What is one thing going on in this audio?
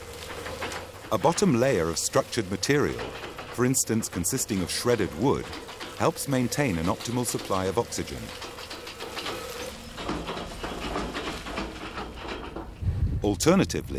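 A loader's diesel engine rumbles and roars.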